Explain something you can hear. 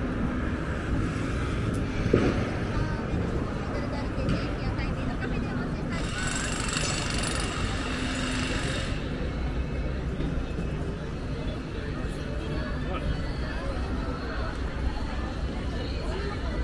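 Many people talk at once, some distance away, out in the open air.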